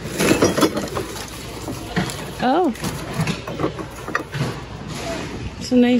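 Ceramic dishes clink together as they are handled.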